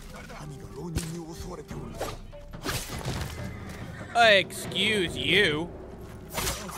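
Swords slash and strike with sharp clangs.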